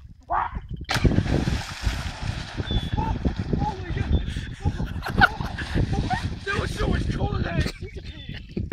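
Water splashes heavily as a young man wades through it.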